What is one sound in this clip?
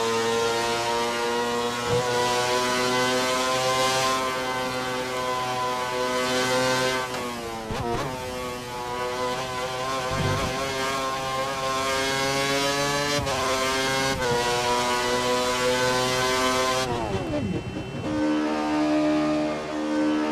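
A racing car engine screams at high revs, dropping in pitch with each gear change and braking before climbing again.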